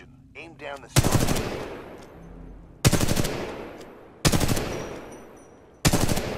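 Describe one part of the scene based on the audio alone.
A rifle fires single loud shots that echo away.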